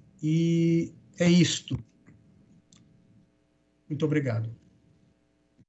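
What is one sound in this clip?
A man speaks briefly and calmly over an online call.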